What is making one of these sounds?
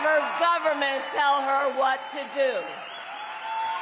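A woman speaks forcefully through a microphone over loudspeakers.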